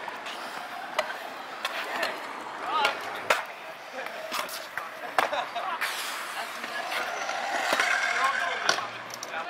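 A scooter clatters as it lands on concrete.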